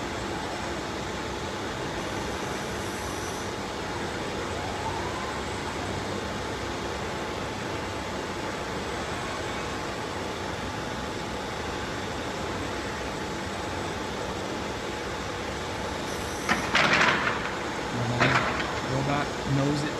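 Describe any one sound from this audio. Machinery hums steadily.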